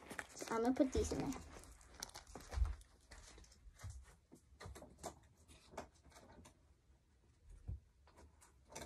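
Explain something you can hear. Feet thump on the floor as a girl dances.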